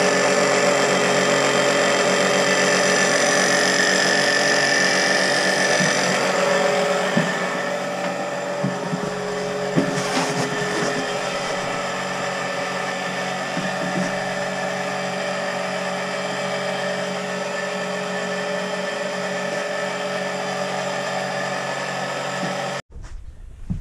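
A small electric pump hums steadily.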